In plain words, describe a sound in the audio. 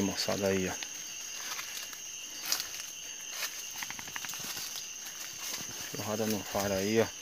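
Footsteps crunch and rustle through dry leaves and undergrowth.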